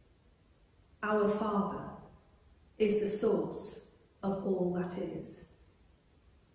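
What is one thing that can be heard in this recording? A woman sings slowly and clearly in short phrases, close to a microphone.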